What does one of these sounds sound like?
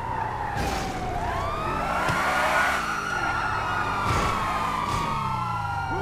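Car tyres screech on pavement.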